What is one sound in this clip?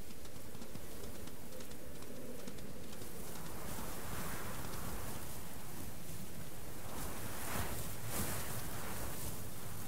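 Light paws patter quickly over grass and stones.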